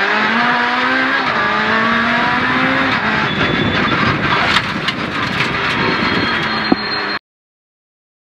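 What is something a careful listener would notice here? A rally car engine roars loudly from inside the cabin, revving up and down through the gears.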